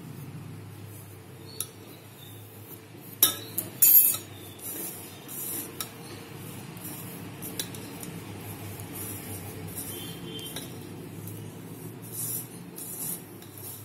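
Hands rub and crumble flour in a metal bowl.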